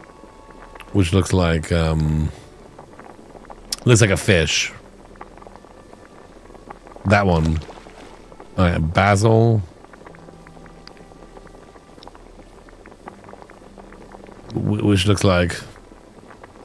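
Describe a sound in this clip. A man talks in short bursts into a close microphone, with animation.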